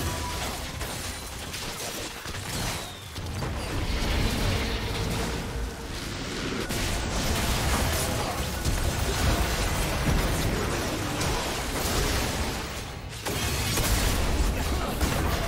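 Video game spell blasts and sword hits crackle and boom in a fight.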